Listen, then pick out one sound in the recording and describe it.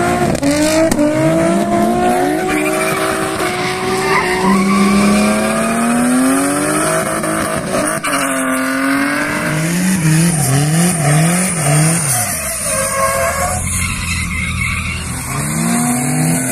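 Tyres screech on asphalt.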